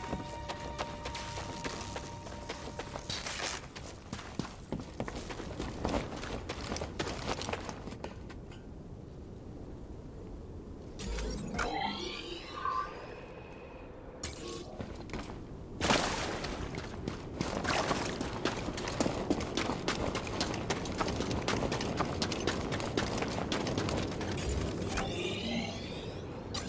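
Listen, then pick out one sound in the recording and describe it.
Footsteps crunch quickly on rough ground.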